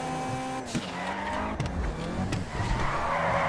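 Tyres screech as a car turns sharply.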